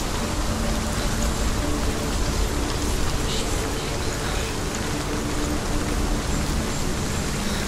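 Footsteps run over soft ground and grass.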